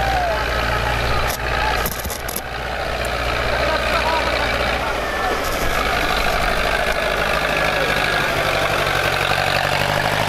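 A large crowd of men shouts and clamours outdoors.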